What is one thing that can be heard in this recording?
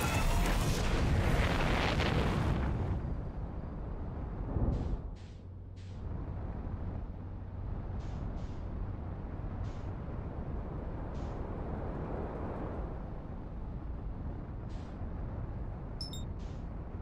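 A low engine rumble drones steadily.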